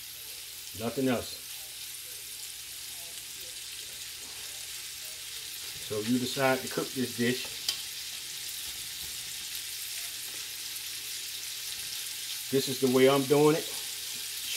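Slices of sausage drop softly into a metal pot.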